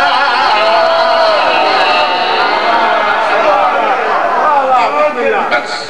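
Several men sing together in a loud chorus.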